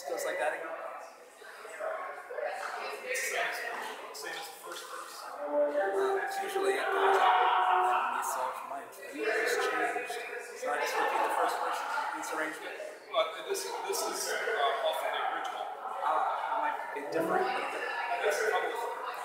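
A young man chants through a microphone in a large echoing hall.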